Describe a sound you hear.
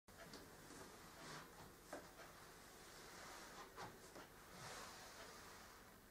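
Footsteps shuffle softly across a floor.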